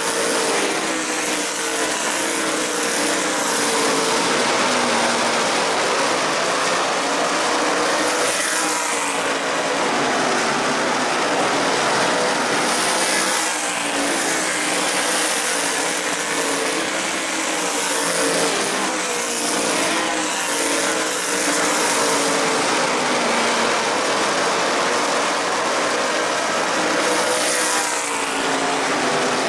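Race car engines roar loudly as cars speed past on an outdoor track.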